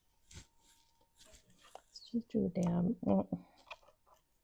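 Cardboard pieces tap and slide on a table.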